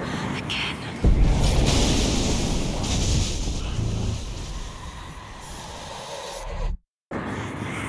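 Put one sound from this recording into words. A deep, heavy rumble swells and then fades away.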